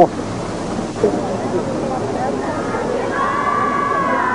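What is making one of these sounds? A crowd sings together in the distance outdoors.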